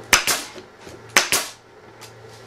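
A pneumatic nail gun fires with sharp bangs.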